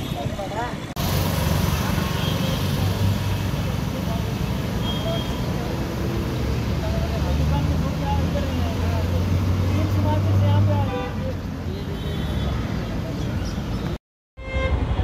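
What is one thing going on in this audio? Traffic rumbles past on a street.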